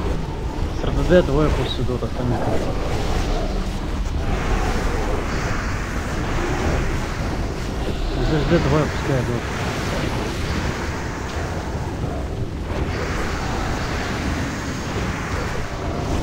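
Magic spells blast and crackle in a busy fantasy battle.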